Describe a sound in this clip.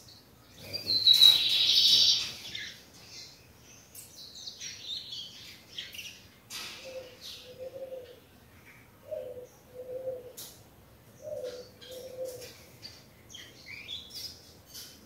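A small bird sings and chirps in bright, twittering bursts close by.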